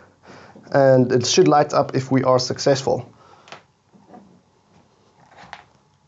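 A plastic plug snaps into a socket.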